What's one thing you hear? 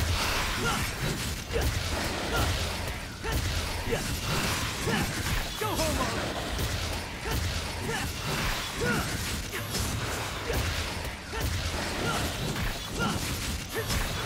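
A creature growls and screeches as it is hit.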